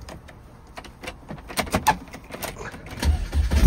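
A car's ignition key clicks as it turns.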